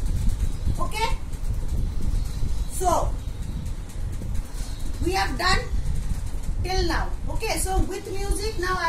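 A young woman speaks animatedly, close by.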